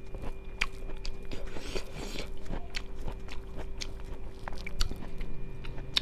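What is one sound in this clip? Fingers squish and mix rice close by.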